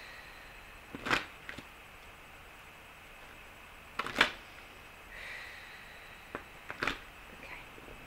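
Objects knock and thump nearby.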